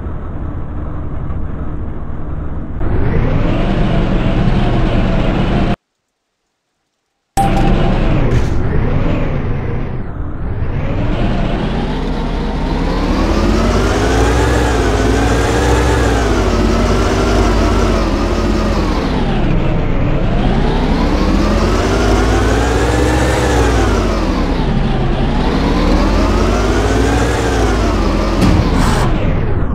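A vehicle engine idles, then revs up and down as it drives.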